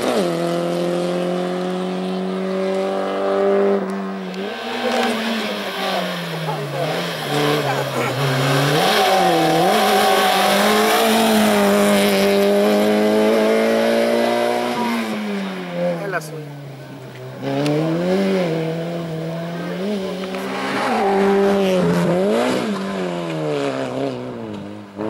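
A rally car engine roars loudly, revving up and down as it shifts gears.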